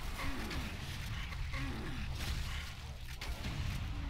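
A shotgun fires with sharp blasts.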